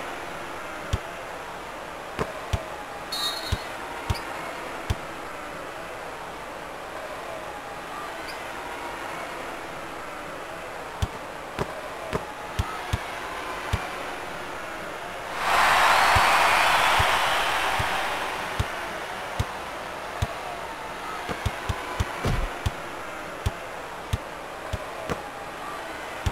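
A crowd murmurs steadily in a large echoing arena.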